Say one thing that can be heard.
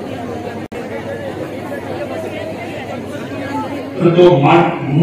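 A crowd murmurs quietly in the background.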